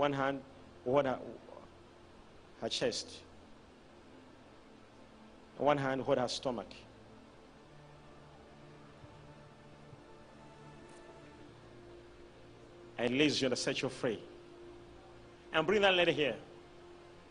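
A man speaks into a microphone in short bursts, heard through loudspeakers in a large echoing hall.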